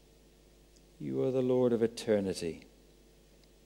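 A man reads aloud calmly through a microphone.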